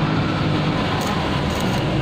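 An electric welder crackles and sizzles in short bursts.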